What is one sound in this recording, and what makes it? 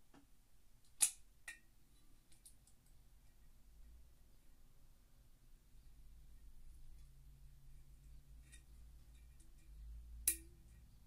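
A glass bottle knocks and clicks as it is handled up close.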